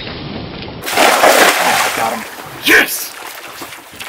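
A cast net splashes down onto the water.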